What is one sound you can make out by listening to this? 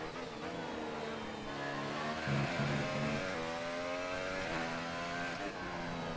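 A racing car engine whines loudly, rising and falling in pitch as the gears change.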